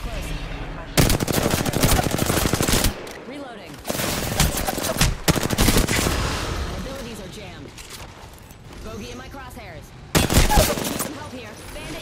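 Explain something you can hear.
A rifle fires in rapid bursts of loud, sharp shots.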